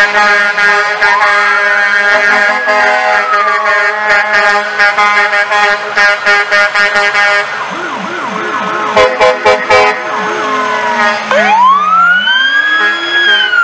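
Sirens wail, rising and falling.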